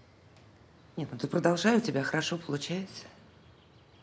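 A middle-aged woman speaks with feeling nearby.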